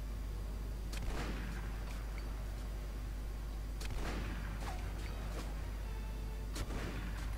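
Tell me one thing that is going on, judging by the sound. A rifle fires loud sharp shots that echo away.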